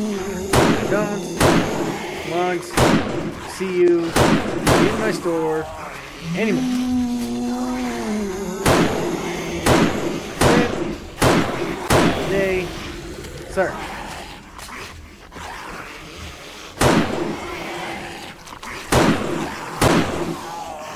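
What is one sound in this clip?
Rifle shots fire in sharp, loud bursts.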